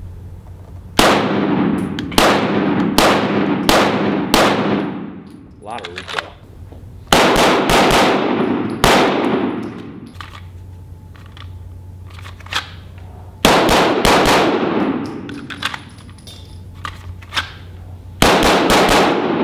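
A pistol fires rapid shots that echo loudly in a large hall.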